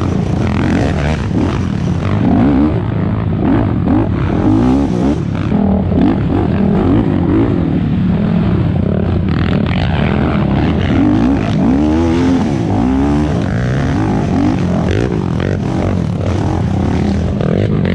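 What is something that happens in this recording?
A quad bike engine roars and revs up close.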